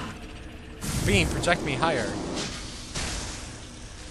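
A game's morph ball rolls with a whirring hum.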